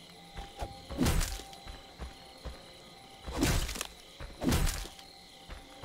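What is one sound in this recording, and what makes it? A blade strikes a wooden door with heavy thuds.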